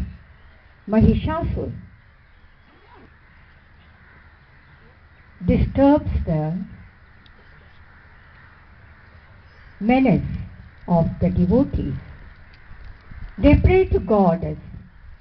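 A woman sings short phrases through a microphone, heard over loudspeakers.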